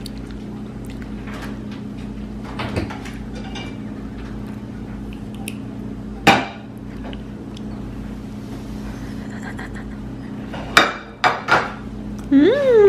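A toddler crunches on a crisp cracker up close.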